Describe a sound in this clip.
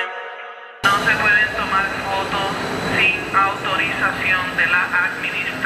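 A train rushes past close by.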